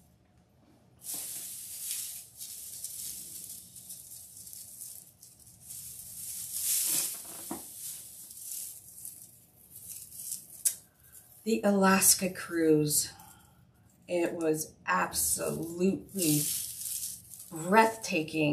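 Dry raffia and mesh ribbon rustle and crinkle as hands handle them.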